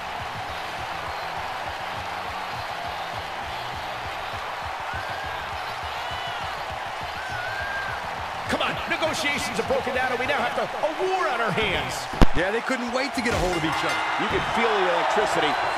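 A large crowd roars and cheers in a big echoing arena.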